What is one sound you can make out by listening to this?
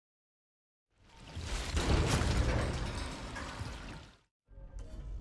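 Heavy metal doors creak and grind open.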